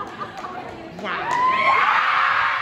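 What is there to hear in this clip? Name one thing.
Young women scream loudly in celebration.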